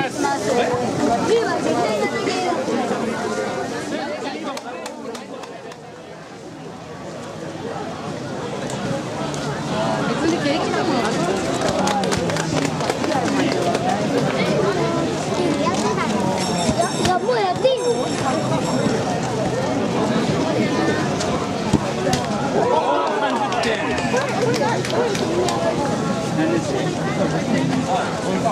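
A crowd of people chatter and call out all around outdoors.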